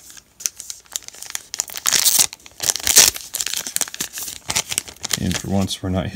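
A plastic wrapper crinkles and tears.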